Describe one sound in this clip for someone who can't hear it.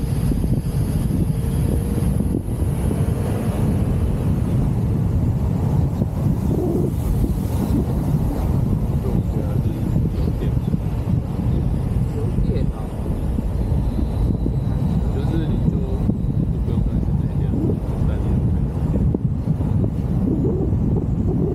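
Strong wind rumbles and buffets past an open-top car driving along.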